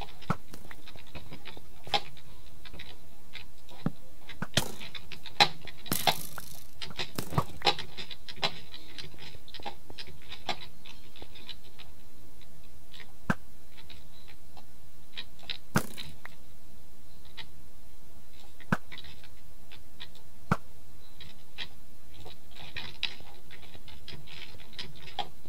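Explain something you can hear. Footsteps tap on stone blocks.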